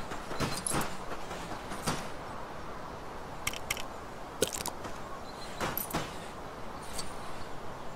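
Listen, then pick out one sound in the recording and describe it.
Small coins clink and jingle as they are picked up.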